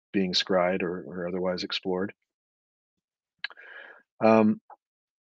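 A middle-aged man speaks calmly into a microphone over an online call.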